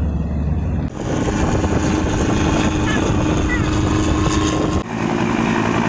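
A pickup truck drives past on tarmac.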